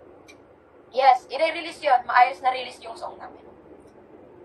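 A young woman speaks with animation, close to the microphone.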